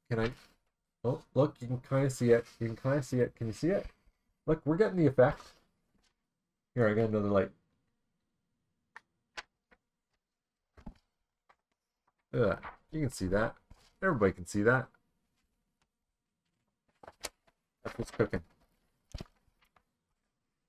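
Paper pages rustle as a magazine is handled.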